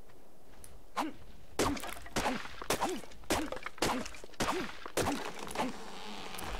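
A hatchet chops into wood with repeated knocks.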